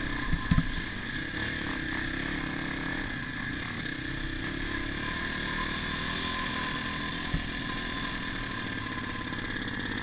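Dirt bike tyres crunch over gravel and mud.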